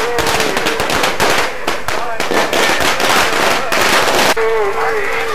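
Firecrackers crackle and pop rapidly nearby.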